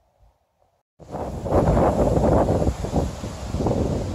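Wind gusts loudly across an open hillside.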